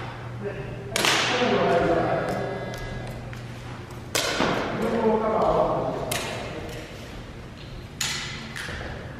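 An arrow strikes a target with a sharp thud that echoes through a large hall.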